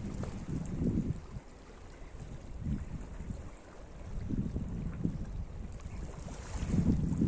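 Small waves lap and splash against rocks close by.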